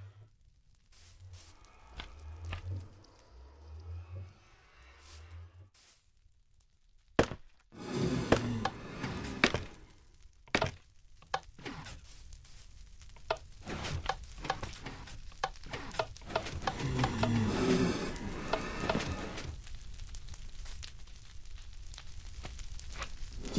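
Footsteps thud softly on hard blocks in a game.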